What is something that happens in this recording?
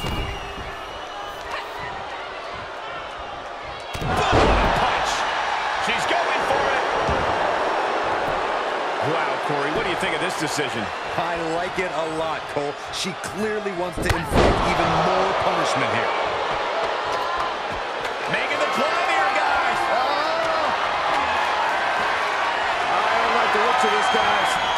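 A large crowd cheers and roars in a big arena.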